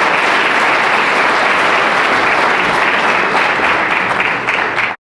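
A large audience applauds and cheers loudly in a big hall.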